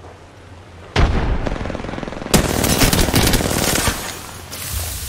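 Gunfire and explosions boom loudly in a video game.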